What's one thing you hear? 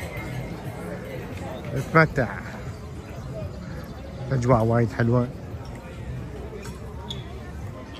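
People chatter in a low murmur outdoors.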